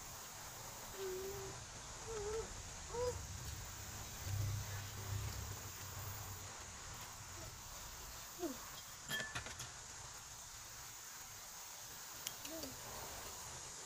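A woman hums and murmurs softly close by.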